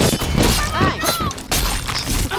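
A woman shouts in pain close by.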